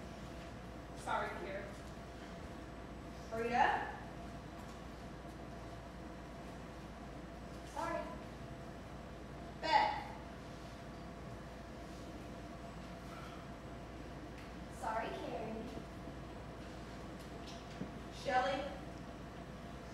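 Young women call out short lines in turn on a stage, heard from the audience.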